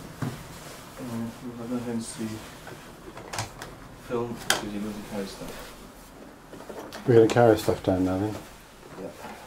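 A young man speaks close by in a low, casual voice.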